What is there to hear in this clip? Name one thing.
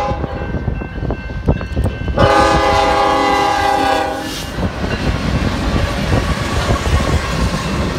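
Diesel locomotives rumble past close by.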